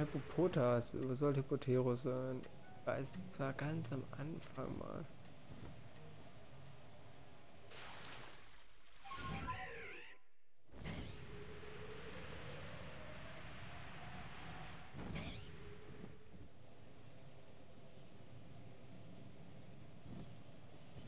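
Wind rushes steadily past during a gliding flight.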